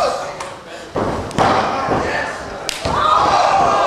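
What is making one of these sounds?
A referee's hand slaps a wrestling ring mat.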